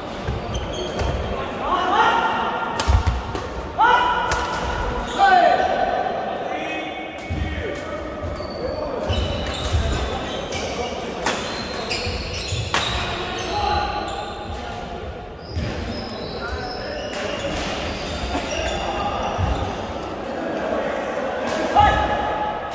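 Badminton rackets strike a shuttlecock with light pops.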